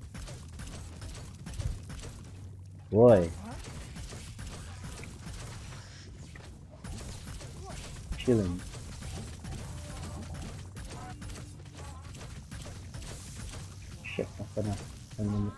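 A video game beam weapon fires with a crackling buzz.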